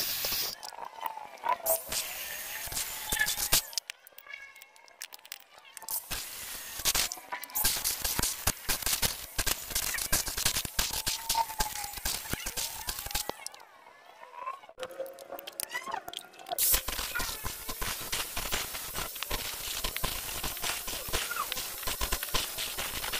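An angle grinder whines loudly as its disc cuts into metal.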